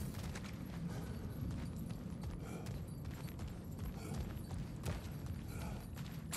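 Heavy footsteps crunch on stone.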